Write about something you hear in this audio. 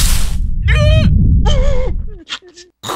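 A cartoon creature screams in a high, wavering voice.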